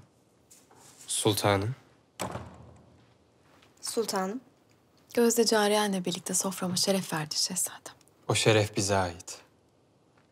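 A young woman speaks calmly and warmly, close by.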